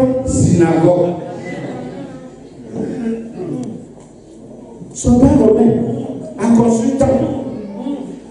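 A man preaches with animation into a microphone, heard through a loudspeaker in an echoing room.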